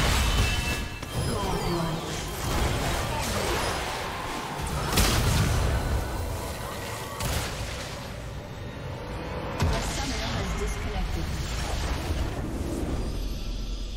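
Magic spells crackle and burst in a fast battle.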